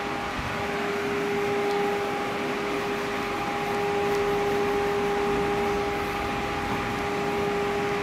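A duster rubs and squeaks across a whiteboard.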